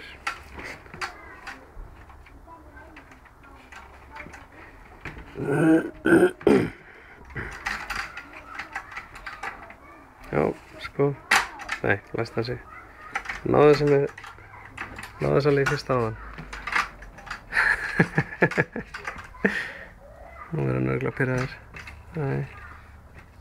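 A wooden gate knocks and rattles as a small child climbs on it.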